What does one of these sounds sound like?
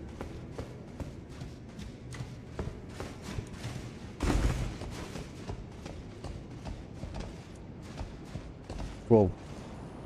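Quick footsteps patter on a stone floor.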